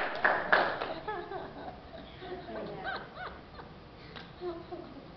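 A young girl talks softly into a microphone.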